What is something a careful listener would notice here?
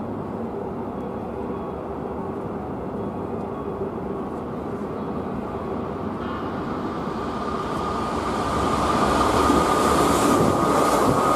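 A train approaches with a steady rumble that grows louder.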